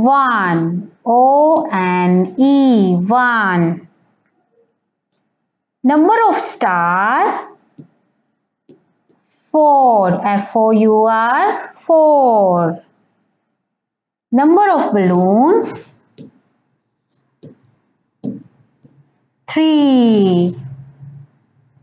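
A young girl speaks slowly and clearly in a sing-song voice, close by.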